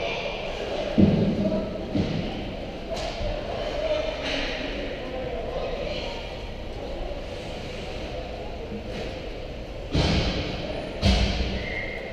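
Loud thuds knock against the glass and boards.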